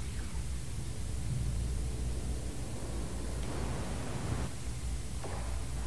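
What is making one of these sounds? A young woman talks quietly into a close microphone.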